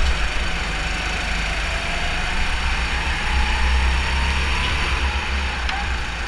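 Wind buffets loudly past the driver.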